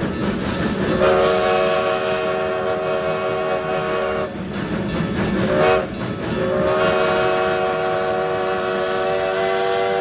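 A steam locomotive's whistle blows loudly in long, steady blasts.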